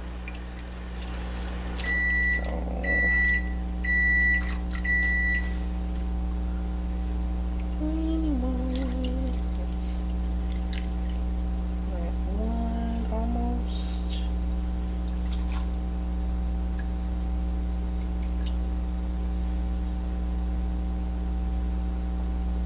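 Water pours from a jug into a plastic container.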